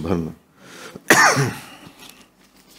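A man coughs.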